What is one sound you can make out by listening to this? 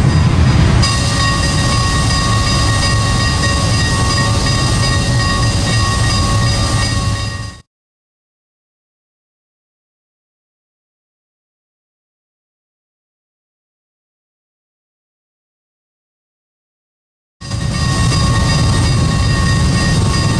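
A diesel locomotive engine rumbles and hums steadily at idle.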